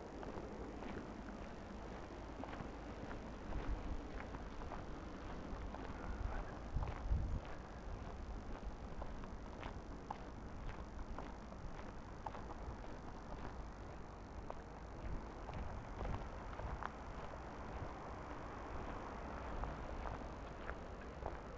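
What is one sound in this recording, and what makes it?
Wind rumbles and buffets in gusts outdoors.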